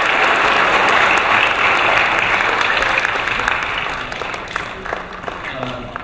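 A crowd applauds in a large echoing hall, then the clapping fades.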